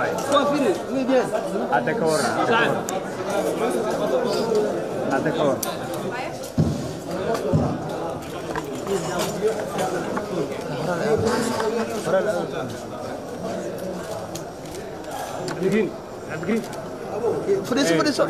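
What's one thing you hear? A crowd of men and women chatters close by.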